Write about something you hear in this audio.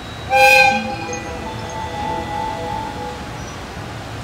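An electric locomotive's motors whine as it starts to move.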